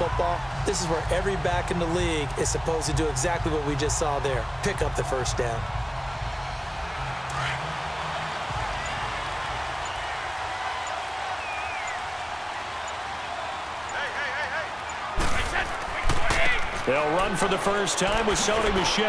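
Football pads crash together as players collide.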